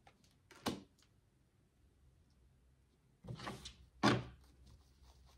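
Cards slap softly onto a table.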